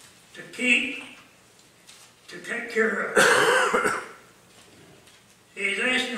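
An elderly man speaks slowly and solemnly into a microphone, in a room with slight echo.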